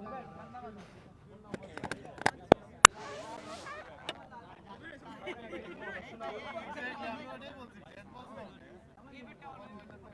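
A crowd of men talks and calls out outdoors.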